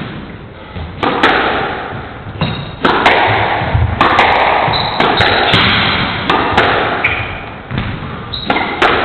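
Squash rackets strike a ball with sharp smacks that echo in a hall.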